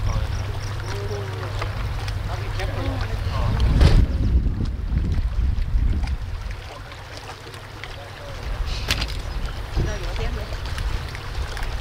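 A woman talks casually nearby.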